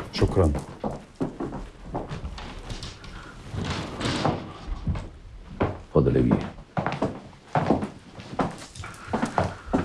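Footsteps walk across a wooden floor.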